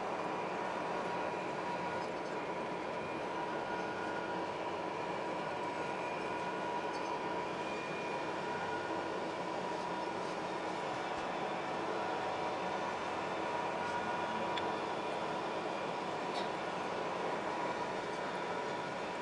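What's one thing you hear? A cutting tool scrapes and whines against turning metal.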